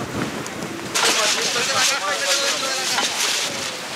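A middle-aged man shouts outdoors in the wind.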